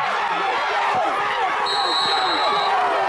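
Football players collide with thuds in a tackle.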